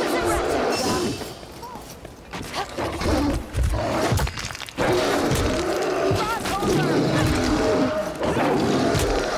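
Heavy blades slash and thud into bodies in a close fight.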